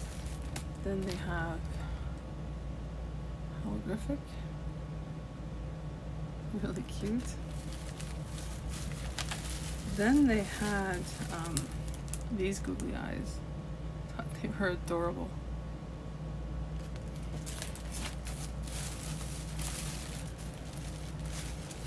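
Plastic packaging crinkles as it is handled.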